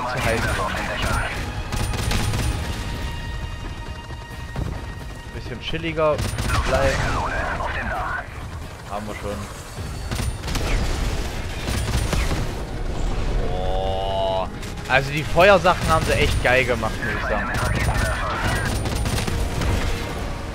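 A helicopter's rotor thumps and drones steadily.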